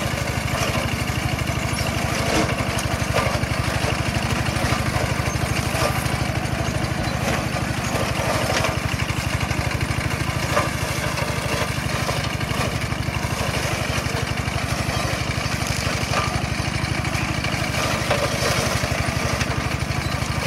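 A tractor-mounted mower chops through dry corn stalks.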